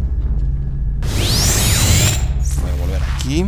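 A whoosh sweeps past as a player steps through a portal.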